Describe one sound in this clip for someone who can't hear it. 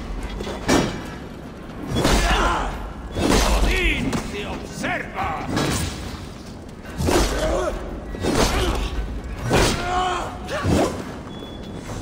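Blades clash and strike with heavy thuds.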